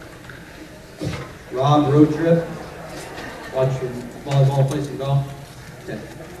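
A man speaks into a microphone in a hall.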